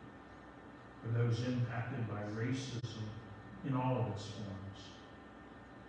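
A woman speaks calmly through a microphone in a large echoing room.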